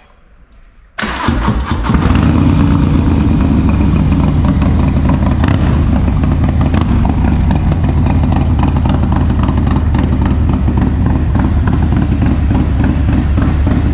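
A motorcycle engine idles with a deep, loud rumble.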